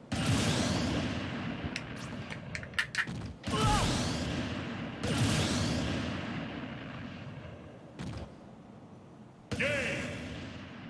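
Video game blasts and booming impacts ring out with sweeping effects.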